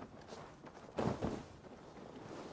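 Snow bursts up with a soft whoosh.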